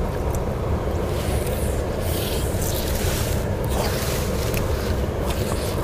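A fishing reel clicks and whirs as the line is reeled in.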